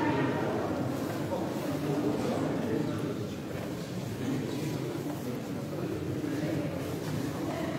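Footsteps shuffle on a stone floor.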